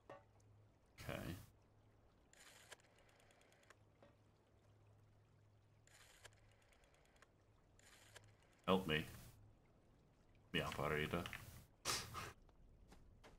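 A man speaks briefly and casually into a close microphone.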